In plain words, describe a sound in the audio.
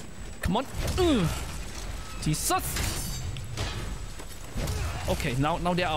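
A blade clangs against metal armour.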